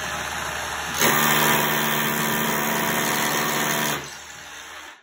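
A rotary hammer drill hammers rapidly into concrete.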